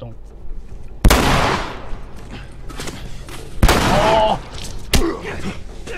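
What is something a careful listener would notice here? Gunshots bang loudly, each followed by a ringing echo.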